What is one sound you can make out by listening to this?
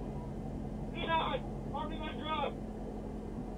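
A man speaks calmly through a body microphone.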